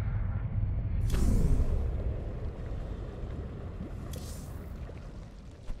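A deep whoosh sweeps in as a menu changes.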